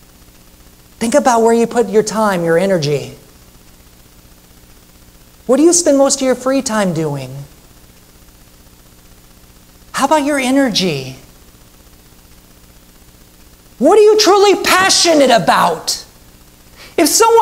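A man speaks slowly and expressively through a microphone in a large room, pausing between phrases.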